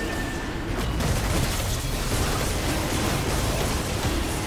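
Magic spells burst and whoosh in a fast fantasy battle.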